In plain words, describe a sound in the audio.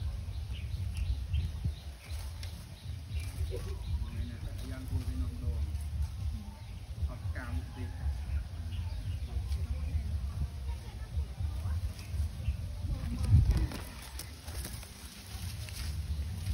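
Dry leaves rustle and crunch as a small child clambers through them.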